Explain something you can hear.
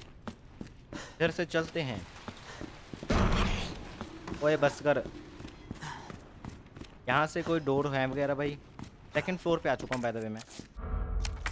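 A young man speaks into a close microphone.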